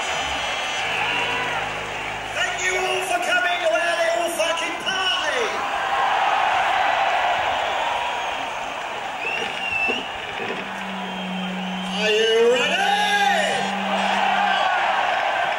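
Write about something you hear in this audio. An electric guitar plays loudly through speakers.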